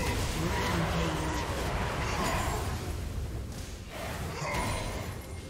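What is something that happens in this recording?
Magic spells whoosh and crackle as fighters clash in a game battle.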